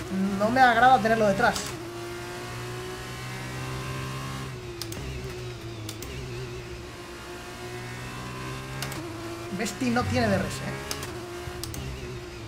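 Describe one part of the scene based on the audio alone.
A racing car engine whines steadily, rising and falling in pitch as it shifts gears.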